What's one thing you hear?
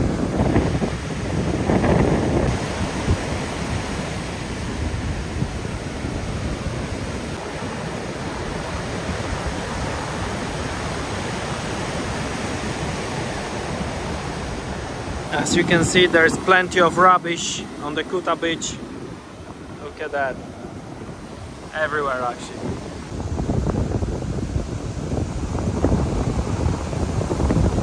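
Ocean waves crash and wash onto the shore.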